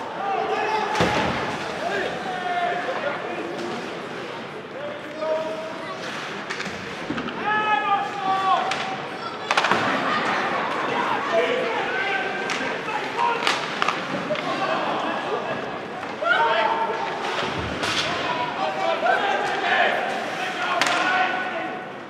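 Ice hockey sticks clack sharply against the puck.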